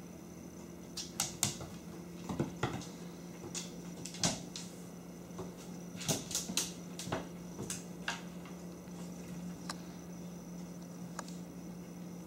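A cat's paws tap and skitter on a hard floor.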